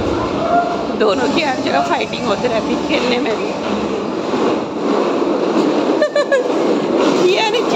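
Young children shout and squeal with high voices nearby.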